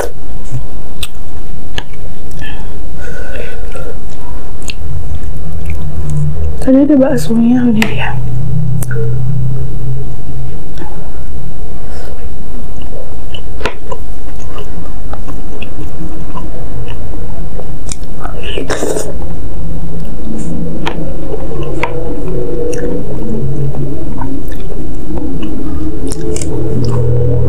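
Utensils clink and scrape against a plate.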